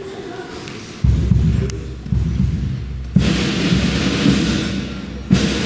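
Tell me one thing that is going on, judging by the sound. A flute band starts to play a lively tune.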